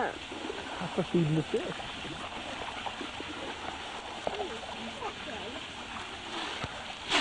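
Water laps and ripples softly outdoors.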